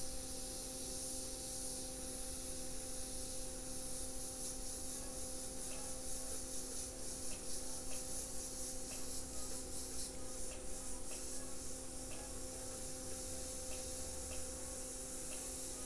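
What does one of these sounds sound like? An airbrush hisses steadily as it sprays paint.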